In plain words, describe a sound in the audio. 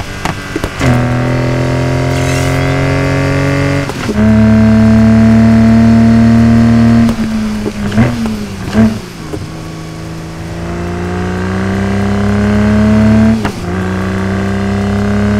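A sports car engine roars loudly, revving up through the gears.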